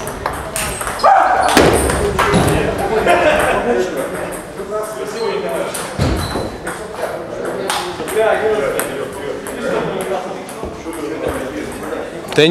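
Men talk nearby in an echoing hall.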